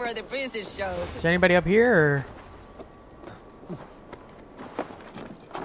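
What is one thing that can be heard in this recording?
Hands and feet knock and scrape on wooden logs while climbing.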